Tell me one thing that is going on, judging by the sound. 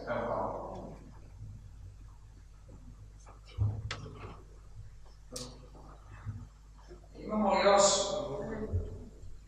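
A man talks calmly in a room.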